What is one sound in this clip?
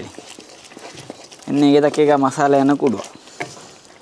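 A thick sauce bubbles and sizzles in a pan.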